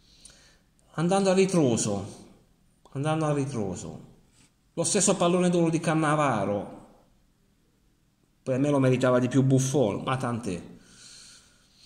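A middle-aged man speaks close to the microphone with animation, in short bursts.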